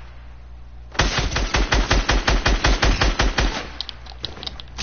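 A rifle fires rapidly in a steady burst.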